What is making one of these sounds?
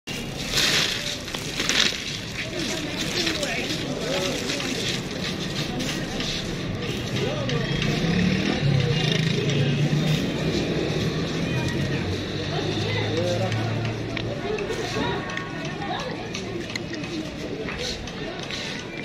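A busy street murmurs with people talking nearby.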